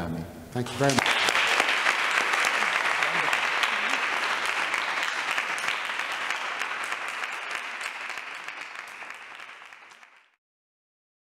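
An audience applauds loudly and slowly fades.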